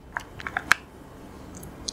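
Hard candies click and rattle against plastic packaging.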